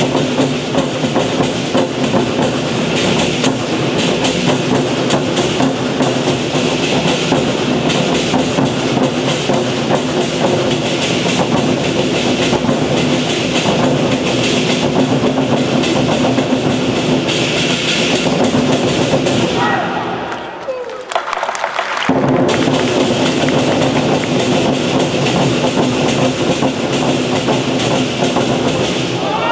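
A group of drummers pounds large drums in a loud, fast, driving rhythm.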